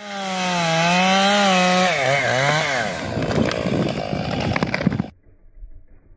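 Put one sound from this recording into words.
A chainsaw roars and revs up and down close by.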